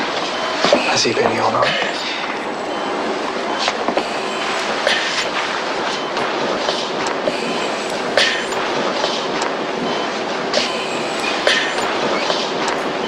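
A monitor beeps at a steady pace.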